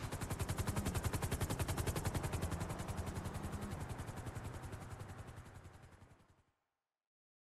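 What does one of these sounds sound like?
A helicopter's rotor chops loudly overhead and fades away.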